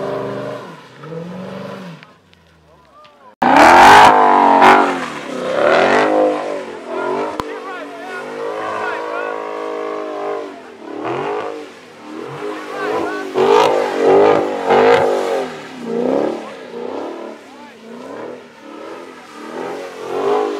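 A powerful car engine roars and revs up and down, close by.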